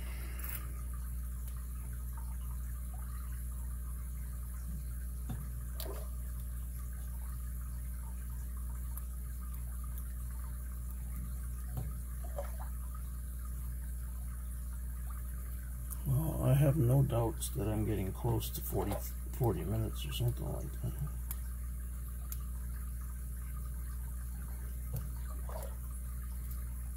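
Metal picks click and scrape faintly inside a padlock.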